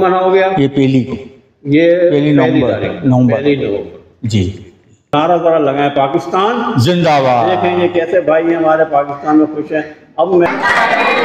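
An elderly man speaks close by into a handheld microphone.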